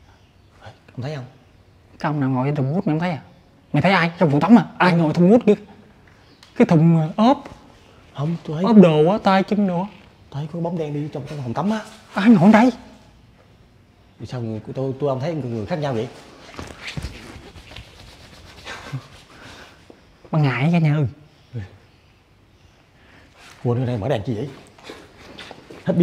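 A second young man answers with animation close by.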